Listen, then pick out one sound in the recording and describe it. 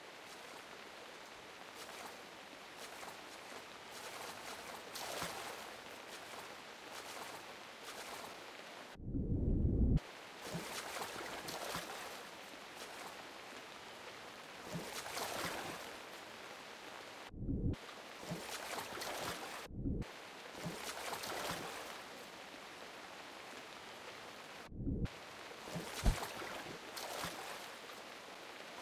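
Water splashes and swishes as swimmers paddle through it.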